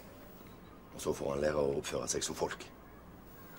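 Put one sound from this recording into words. A teenage boy speaks quietly and sullenly.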